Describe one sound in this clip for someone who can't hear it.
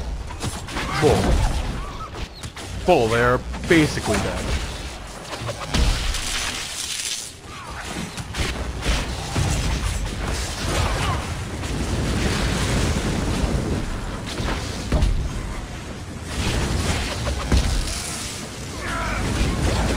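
Magic blasts crackle and zap during a fight.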